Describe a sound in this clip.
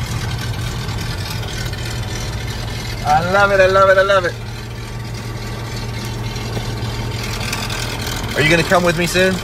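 A small plane's propeller engine drones steadily up close.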